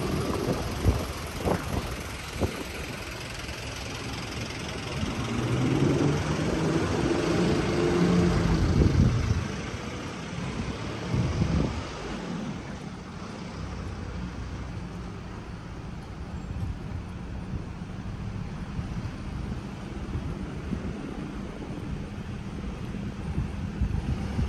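Footsteps on pavement tap steadily close by.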